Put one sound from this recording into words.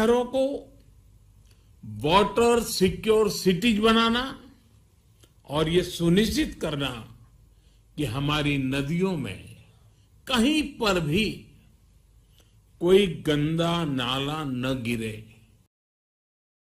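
An elderly man speaks with animation into a microphone, in pauses.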